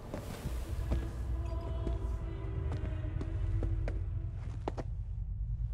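Boots thud in slow footsteps on a hard floor.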